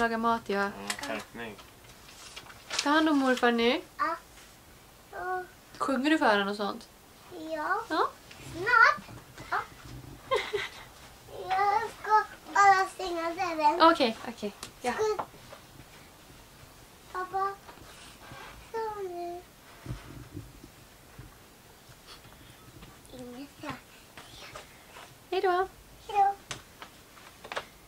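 A toddler babbles and squeals.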